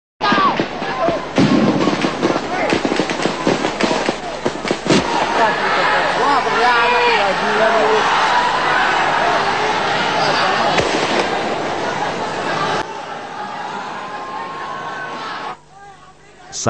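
A crowd shouts and clamours outdoors.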